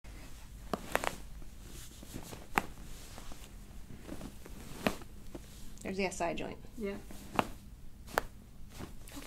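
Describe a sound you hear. Joints crack with short, sharp pops.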